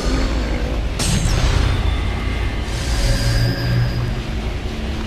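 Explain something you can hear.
Magical chimes sparkle and swirl.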